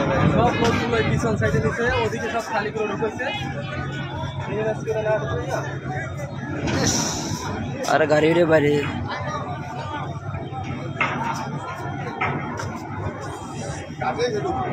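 A crowd of men and women shout and talk excitedly nearby, outdoors.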